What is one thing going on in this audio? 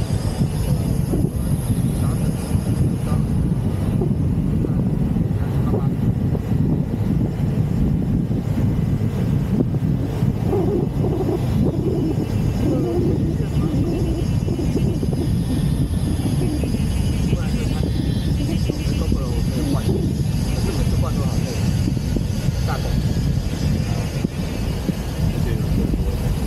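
Wind buffets loudly as an open car drives along.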